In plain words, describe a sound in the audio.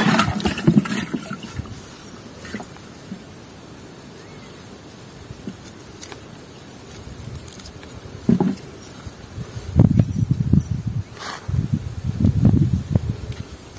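Hands rustle and pull at a fishing net.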